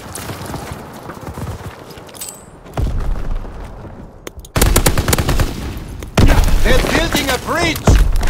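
Rifle shots crack.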